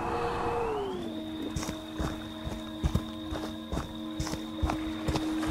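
Heavy footsteps thud on the ground.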